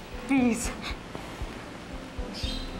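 A young woman speaks tearfully in a shaky voice.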